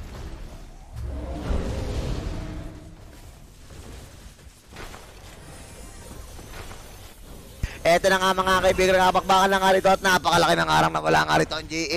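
Fighting game characters' spells crackle and whoosh in a battle.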